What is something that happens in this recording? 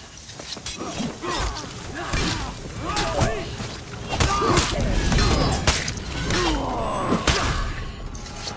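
Warriors grunt and yell as they fight.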